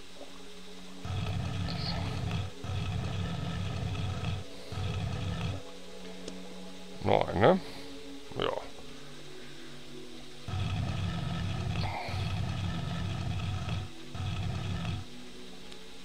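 A heavy stone block grinds and scrapes as it is pushed across a floor.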